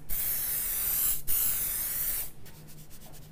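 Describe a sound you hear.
A spray bottle hisses in sharp bursts.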